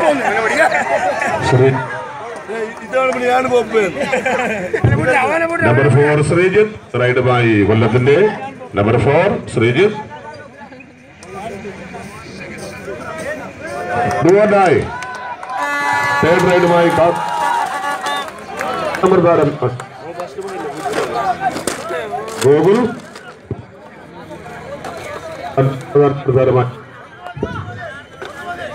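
A crowd of men shouts and cheers close by.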